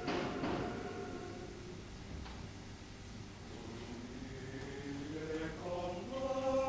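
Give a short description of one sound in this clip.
A male choir sings together in a large echoing hall.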